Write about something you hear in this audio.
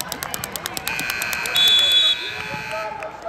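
A game buzzer sounds loudly.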